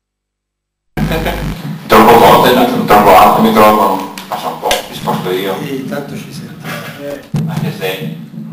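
A man speaks into a microphone, heard through loudspeakers in a large room.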